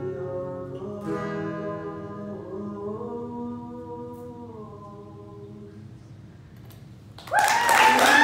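An acoustic guitar is strummed.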